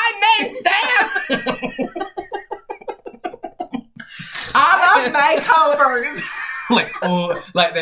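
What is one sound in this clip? Two young men laugh loudly and heartily close by.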